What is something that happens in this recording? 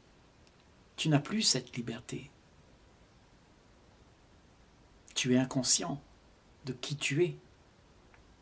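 An elderly man speaks calmly and warmly, close to the microphone, with pauses.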